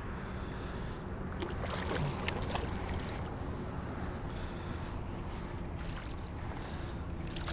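A landing net swishes through the water.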